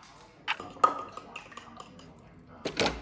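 A fork clinks against a bowl while whisking eggs.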